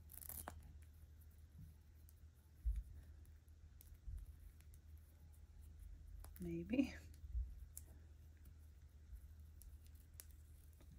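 Small plastic parts click and rustle between fingers.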